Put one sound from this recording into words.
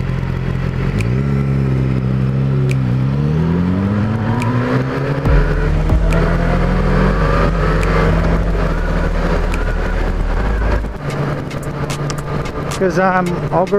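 A motorcycle engine revs up and accelerates away.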